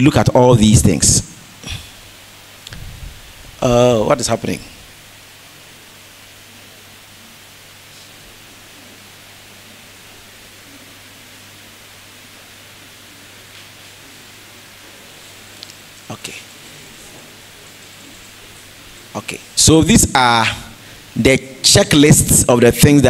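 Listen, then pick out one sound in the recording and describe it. A man speaks to an audience through a microphone, in a large echoing hall, with long pauses.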